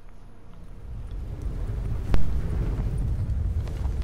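Wind rushes loudly and steadily.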